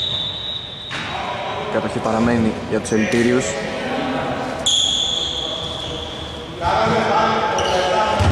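Men call out to each other in an echoing hall.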